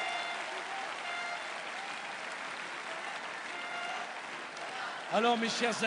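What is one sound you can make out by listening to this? A large outdoor crowd cheers and whistles loudly.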